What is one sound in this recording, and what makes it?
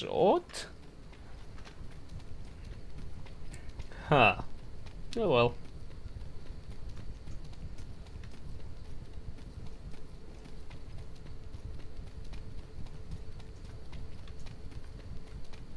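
Footsteps tread steadily over rough ground.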